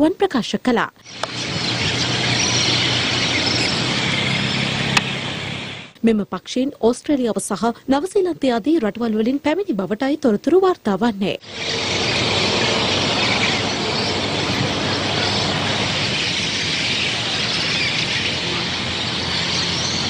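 A large colony of birds calls and chatters.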